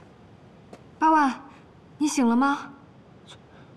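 A young woman calls out anxiously, close by.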